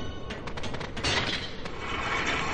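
A blade swishes through the air with a bright ring.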